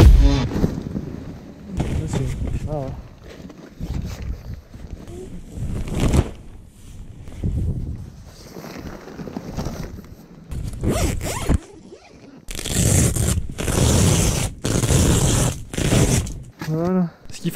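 Nylon tent fabric rustles and flaps as it is handled.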